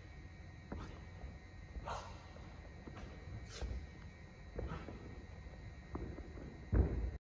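Feet thud on a sprung floor mat, echoing in a large hall.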